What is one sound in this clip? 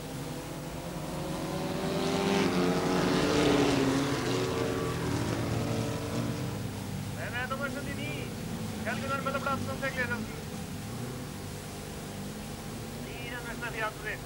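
Racing car engines roar loudly as the cars speed away.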